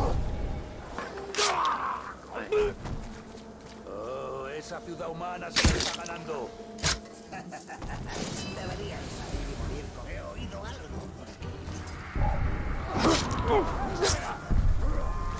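Creatures grunt and growl as they fight.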